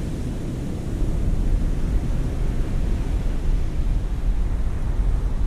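Waves wash and roll on open sea.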